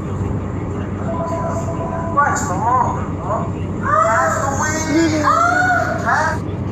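Men talk excitedly close by.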